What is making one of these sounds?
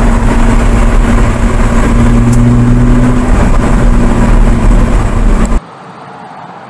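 A sports car engine roars loudly from inside the cabin.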